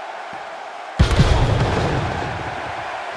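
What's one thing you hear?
A body crashes onto a wrestling ring with a loud thud.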